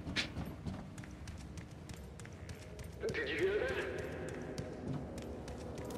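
Footsteps tap quickly on stairs.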